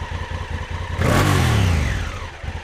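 A motorcycle engine revs up briefly and settles back.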